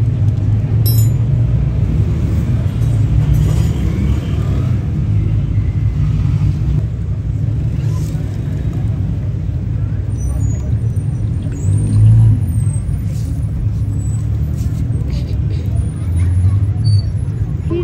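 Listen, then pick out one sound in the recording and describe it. Oil drips and trickles onto the ground.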